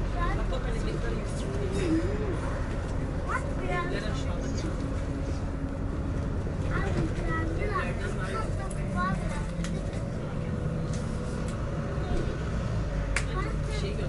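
Cars pass by on the road.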